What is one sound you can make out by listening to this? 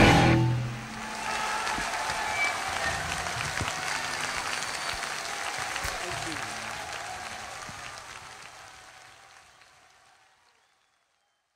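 A large outdoor crowd cheers and claps, then fades away.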